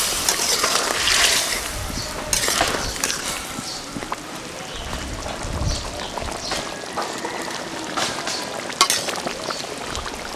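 A metal spatula scrapes and stirs in a metal pot.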